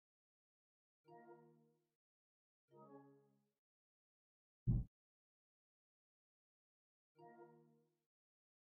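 A soft electronic chime sounds as a menu opens.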